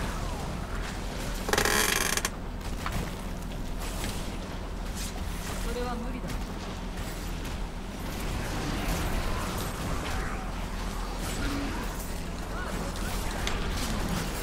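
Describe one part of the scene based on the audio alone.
Fire spells whoosh and roar in a game.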